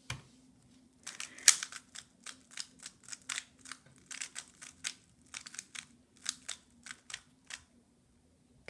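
A puzzle cube clicks and clatters as it is turned rapidly by hand.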